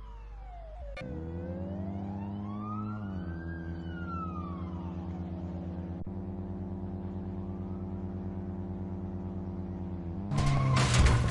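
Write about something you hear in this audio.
A car engine hums steadily as it drives.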